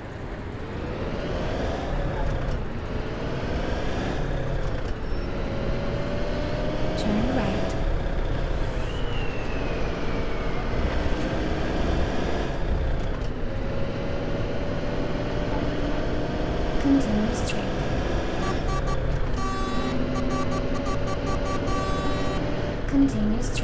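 A bus engine hums and rises in pitch as the bus speeds up, then drops again.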